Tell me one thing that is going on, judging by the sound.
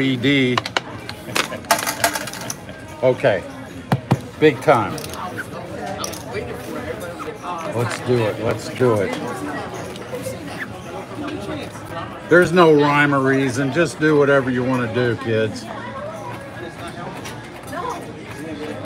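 Casino chips click and clatter against each other.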